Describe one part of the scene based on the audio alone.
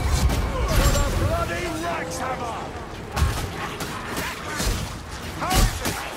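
Blades slash and strike with sharp, heavy hits.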